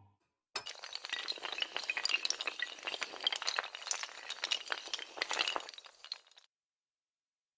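Many dominoes clatter rapidly as they topple one after another.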